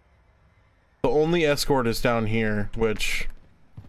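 A bearded man speaks loudly and with animation into a close microphone.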